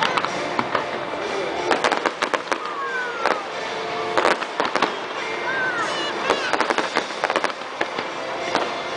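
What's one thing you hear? Fireworks bang and crackle loudly outdoors.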